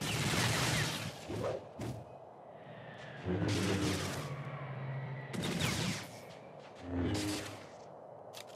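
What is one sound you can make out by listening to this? Blasters fire with sharp electronic zaps.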